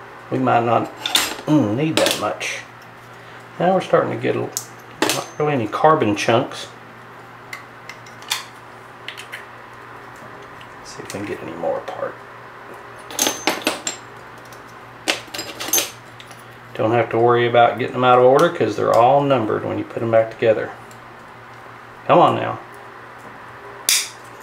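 Small metal parts click and clink against a metal tray.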